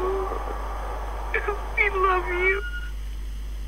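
A voice speaks urgently through an answering machine's small loudspeaker.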